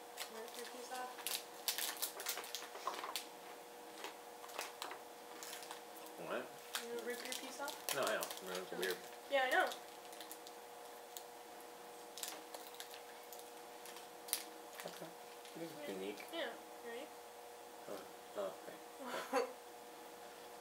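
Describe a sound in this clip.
Candy wrappers crinkle and rustle close by.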